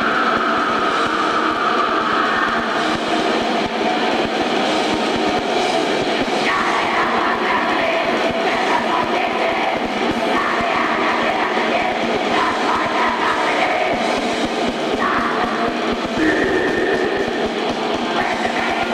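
Distorted electric guitars wail loudly in an echoing hall.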